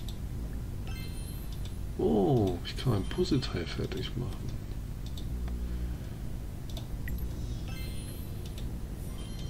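A bright game jingle chimes and sparkles.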